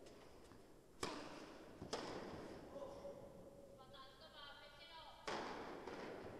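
Tennis balls are struck hard with a racket in a large echoing hall.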